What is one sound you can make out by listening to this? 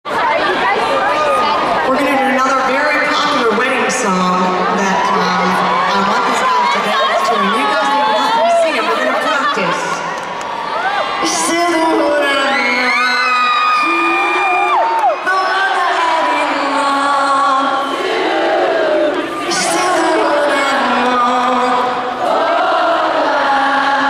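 A young woman sings into a microphone through loudspeakers in a large hall.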